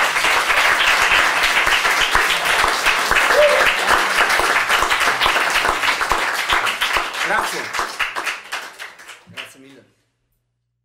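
An audience claps and applauds loudly, then the applause fades away.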